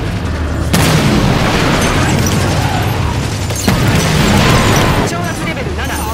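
Loud blasts of weapon fire boom and roar.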